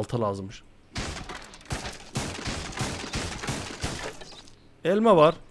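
A wooden crate is smashed with repeated cracking blows.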